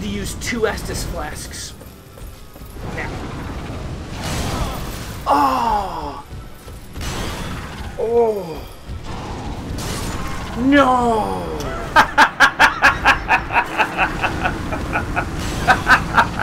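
Fire blasts roar in a video game.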